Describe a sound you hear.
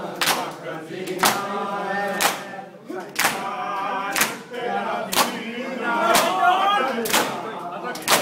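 A crowd of men chant loudly together in a reverberant hall.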